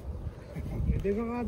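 A young person speaks briefly close by.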